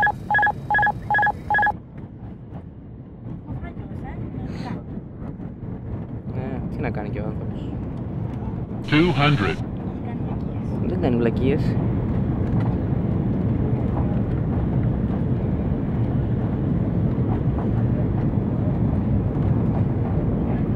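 Jet engines roar steadily inside an airliner cabin, growing louder.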